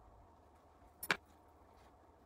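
Metal tweezers clink sharply once.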